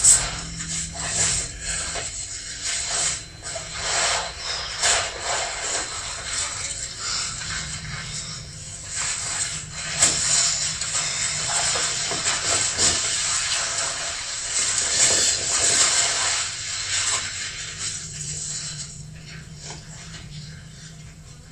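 Heavy canvas rustles and flaps as it is handled.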